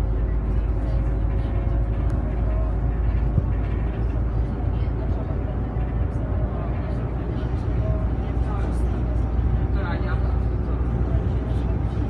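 Loose fittings in a bus rattle.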